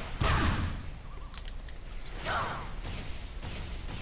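A sword slashes with sharp metallic swishes.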